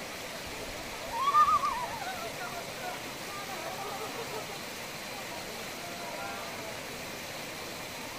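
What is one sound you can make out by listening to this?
Water trickles and splashes over rocks.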